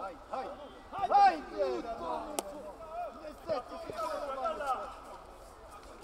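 Spectators and players shout and cheer loudly outdoors.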